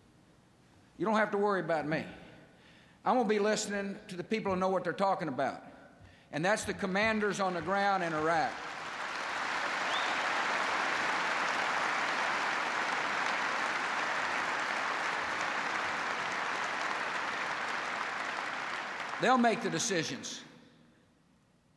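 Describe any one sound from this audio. A middle-aged man speaks emphatically through a microphone in a large hall.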